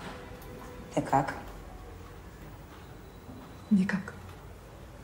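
A young woman speaks briefly in a low, tense voice nearby.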